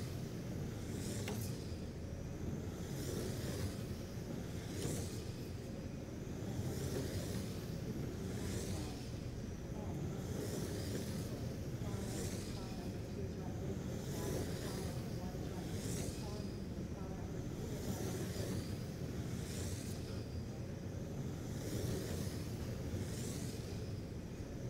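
A low rumble of tyres on the track carries on steadily.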